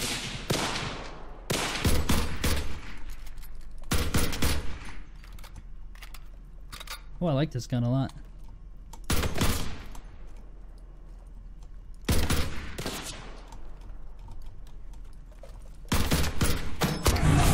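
A rifle fires single sharp shots, with echoes trailing after each one.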